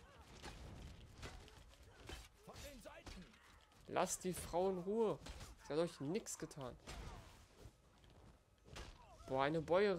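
Weapons clash and thud in a close fight.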